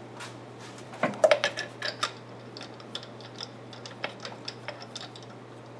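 Metal parts clink and rattle under a hand.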